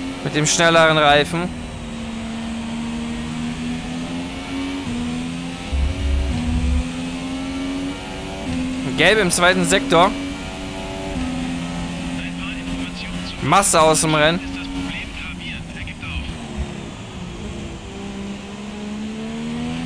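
A racing car engine drops in pitch as it slows for corners.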